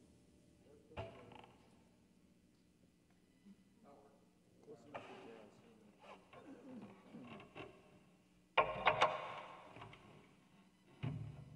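A double bass is handled, with bumps and knocks.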